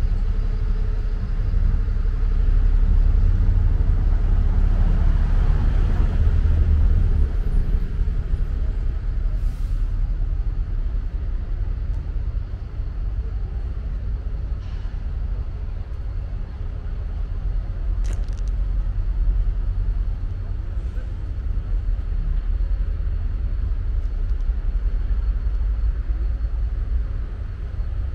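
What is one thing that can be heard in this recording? Wind blows steadily outdoors, rumbling low.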